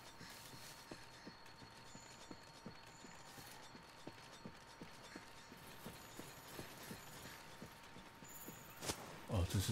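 Footsteps thud quickly and steadily on soft ground.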